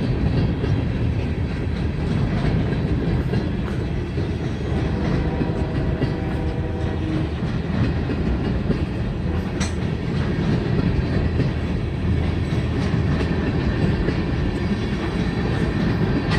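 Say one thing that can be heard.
A level crossing bell rings rapidly.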